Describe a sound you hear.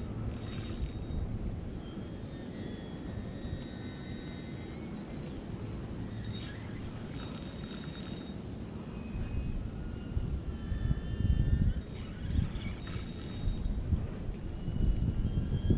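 Wind blows outdoors, buffeting the microphone in gusts.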